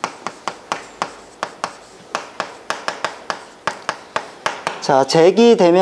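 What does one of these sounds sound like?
Chalk taps and clicks rapidly against a board.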